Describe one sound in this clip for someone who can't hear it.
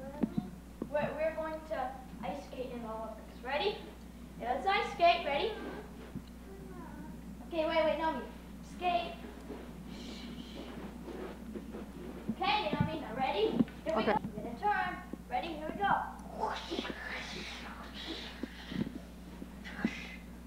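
A small girl squeals and babbles.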